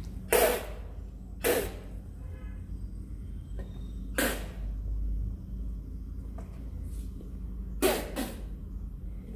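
A woman sprays liquid from her mouth in sharp bursts.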